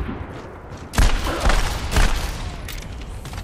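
Heavy shotgun blasts boom in rapid bursts.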